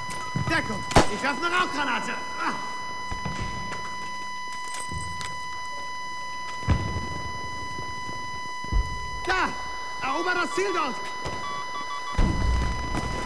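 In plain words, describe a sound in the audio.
Gunshots crack and thud now and then.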